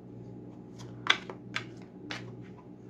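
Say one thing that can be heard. Playing cards are shuffled with soft, quick slaps and flicks.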